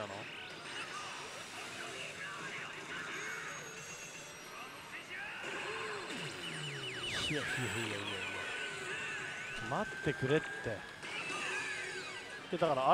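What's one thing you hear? A slot machine plays bright electronic music and chiming effects.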